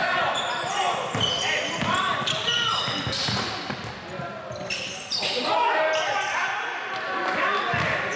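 Young men call out to each other in an echoing gym.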